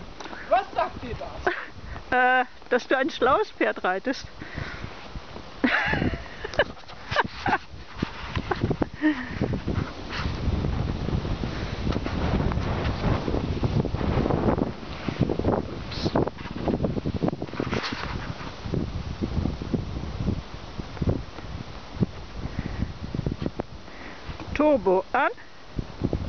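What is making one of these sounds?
Hooves thud softly on dirt as a horse walks.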